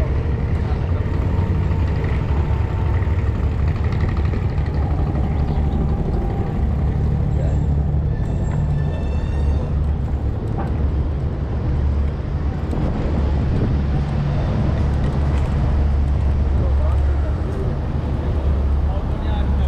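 A scooter's electric motor hums as it rolls along.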